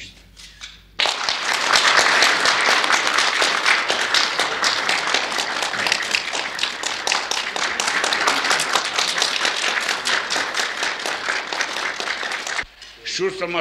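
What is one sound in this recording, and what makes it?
A room full of people applauds loudly and steadily.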